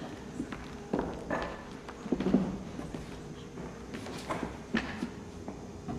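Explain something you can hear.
Footsteps knock on a wooden stage floor.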